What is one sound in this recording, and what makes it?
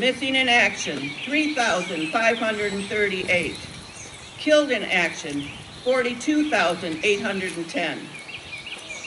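A man speaks slowly and solemnly through a loudspeaker outdoors.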